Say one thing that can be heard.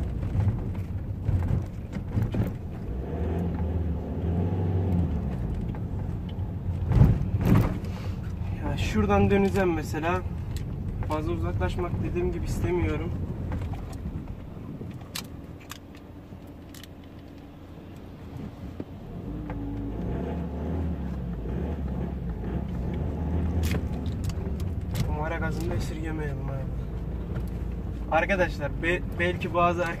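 Raindrops patter on a windshield.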